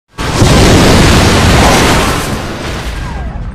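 Huge waves crash and roar loudly.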